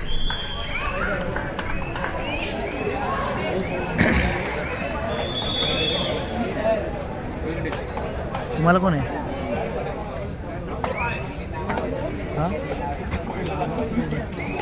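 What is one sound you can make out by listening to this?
A large crowd of spectators chatters and shouts.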